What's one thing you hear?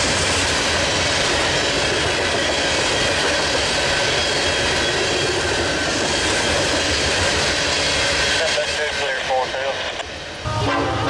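Freight cars rumble and clatter past on the rails.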